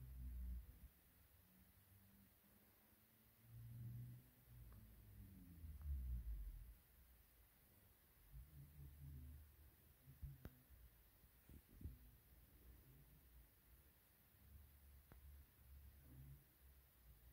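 A finger rubs softly on a kitten's fur.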